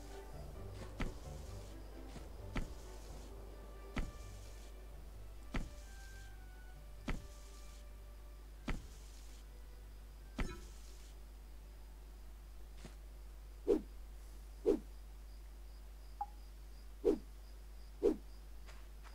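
Knocks on a tree trunk thud at a steady pace.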